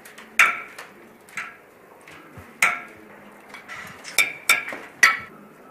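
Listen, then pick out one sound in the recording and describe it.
Metal spoons clink sharply against plates.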